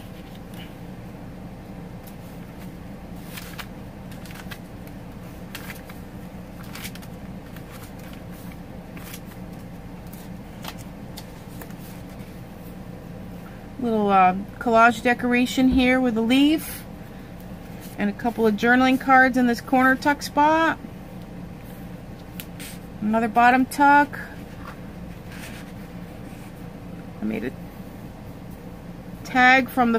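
Paper pages rustle and flip as they are turned.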